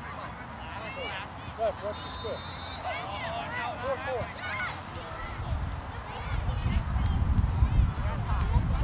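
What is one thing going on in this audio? Young children shout and call out across an open field.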